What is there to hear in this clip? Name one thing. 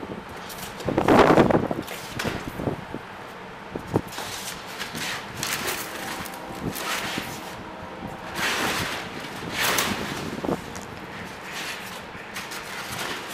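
Foam sheets rustle and crinkle as they are handled.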